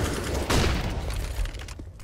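A smoke grenade hisses nearby.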